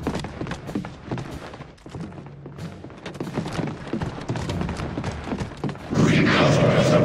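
Heavy boots thud on a metal floor at a steady walking pace.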